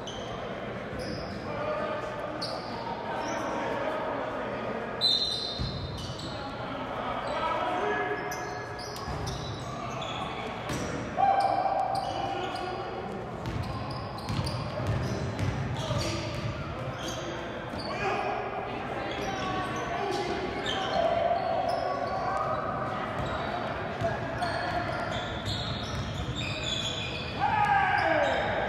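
A basketball bounces on the court with echoing thuds.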